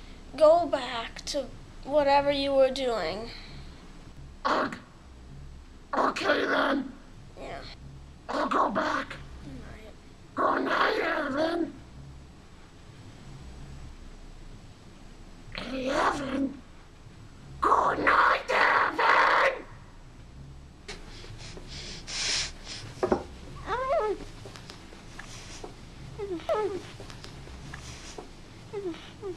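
A young boy talks drowsily and whines close by.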